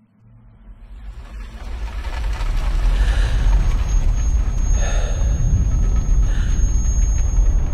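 Debris clatters and scatters.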